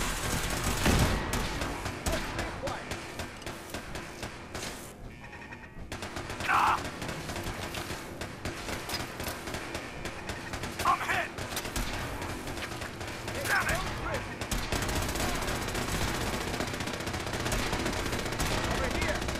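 A laser gun fires in sharp electric zaps.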